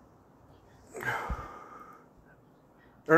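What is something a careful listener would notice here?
A man blows out a long breath of smoke.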